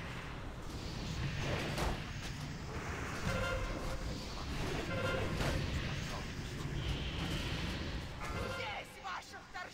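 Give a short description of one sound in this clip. Game spells whoosh and boom during a fight.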